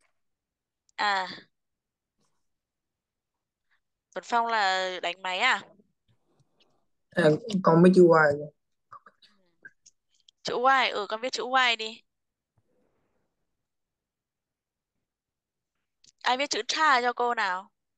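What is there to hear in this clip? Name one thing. A woman speaks calmly in short phrases through an online call, with pauses between them.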